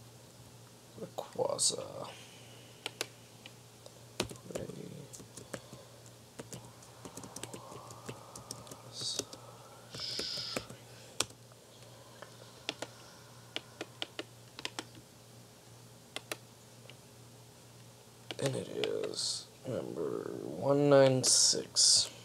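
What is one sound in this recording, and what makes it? A young man speaks calmly and close by, heard through a computer microphone.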